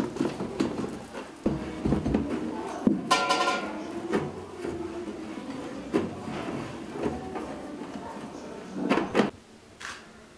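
A weaver's comb knocks and thuds against threads on a loom.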